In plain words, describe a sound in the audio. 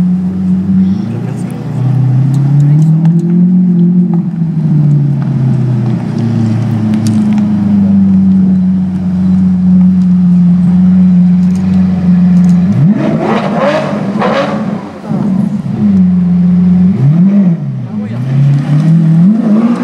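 A sports car engine revs sharply up and down several times.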